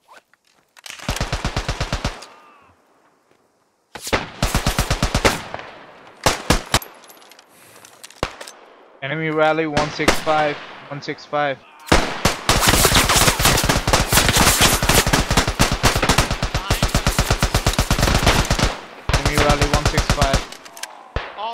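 A machine gun fires loud rapid bursts at close range.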